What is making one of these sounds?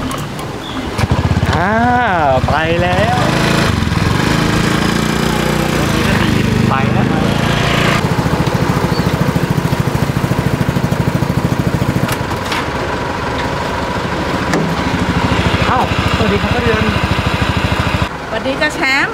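A motorbike engine idles and rumbles close by.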